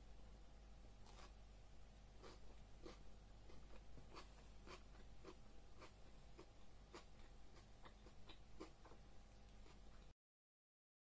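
A woman chews food softly.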